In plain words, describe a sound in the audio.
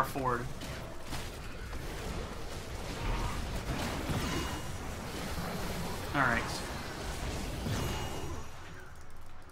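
Magic blasts and crackles in a fierce battle.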